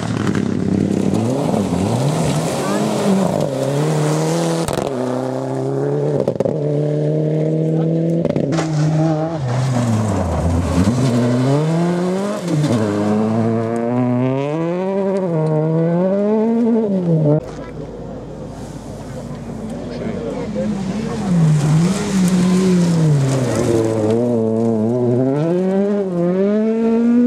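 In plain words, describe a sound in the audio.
A rally car engine revs hard and changes pitch as the car speeds past.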